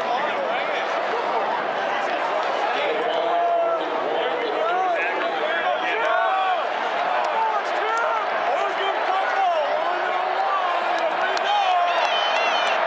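A large crowd chatters and cheers loudly in a big open stadium.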